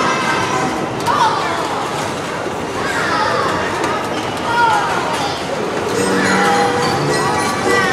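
Children squeal with excitement.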